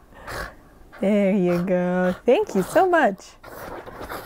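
A dog whines and yips.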